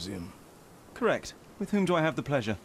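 A young man answers calmly, close up.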